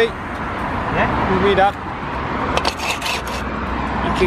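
A trowel scrapes mortar against brick.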